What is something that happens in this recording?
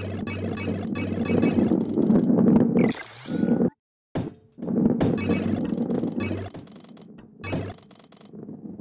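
A heavy ball rumbles as it rolls along a metal track.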